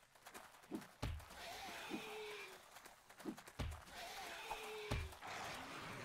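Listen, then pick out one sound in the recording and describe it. A wooden club thuds heavily against a body.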